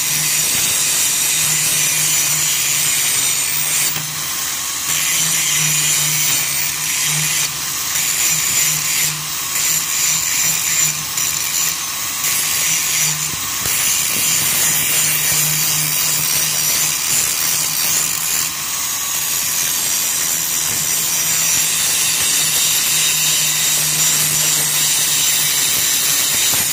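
An angle grinder whines loudly, grinding metal with a harsh, hissing screech.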